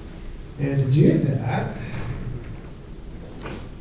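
A young man speaks into a microphone in an echoing hall.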